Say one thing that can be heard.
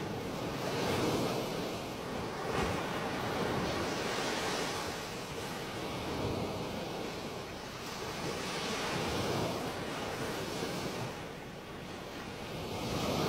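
Water gushes out with a loud, steady roar.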